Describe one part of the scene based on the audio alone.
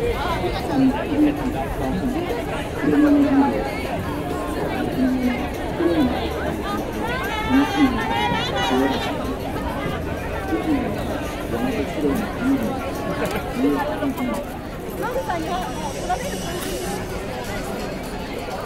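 Footsteps shuffle on pavement.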